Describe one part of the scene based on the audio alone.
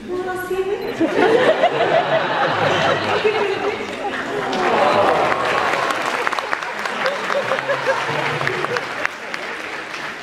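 An audience cheers and applauds loudly.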